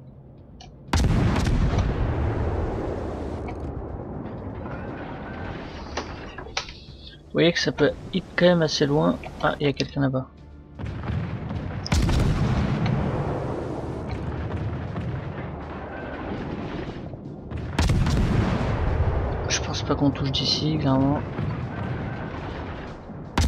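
Heavy naval guns fire with deep booms that rumble and slowly fade.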